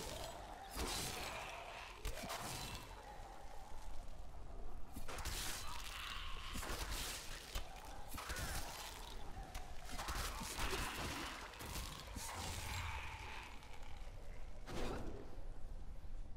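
Magic spells burst and crackle in quick flurries during a fight.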